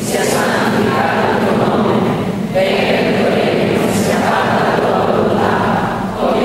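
A middle-aged man speaks steadily into a microphone in a large echoing hall.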